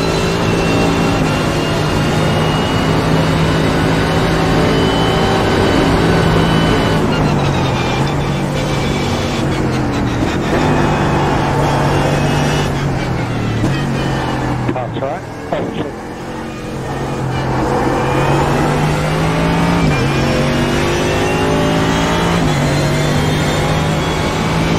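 A racing car engine roars at high revs and shifts through the gears.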